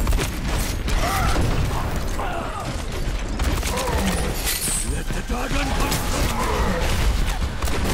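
Rapid gunfire crackles and booms.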